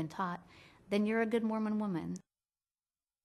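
A woman speaks calmly and warmly, close to a microphone.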